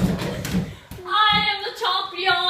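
Teenage boys cheer loudly.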